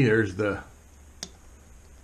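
A folding knife clicks as it is handled.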